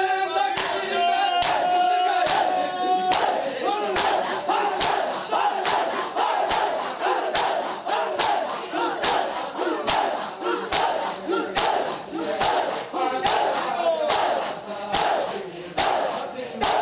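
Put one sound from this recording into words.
A crowd of men chant together in time with the beating.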